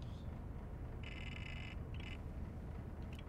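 A computer terminal beeps in short electronic tones.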